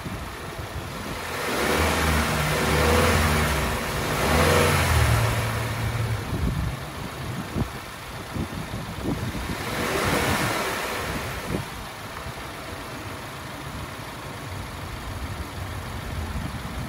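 A car engine idles steadily up close.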